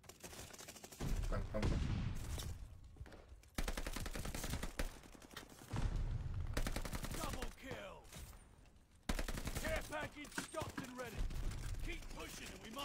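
Gunfire bursts in rapid, loud volleys.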